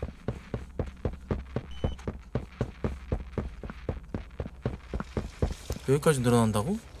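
Footsteps thud at a steady, quick pace.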